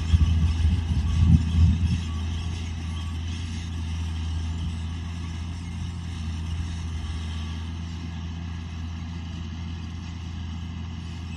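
A tractor engine drones steadily nearby.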